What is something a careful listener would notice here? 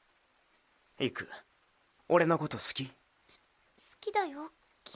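A young woman speaks softly and questioningly, close by.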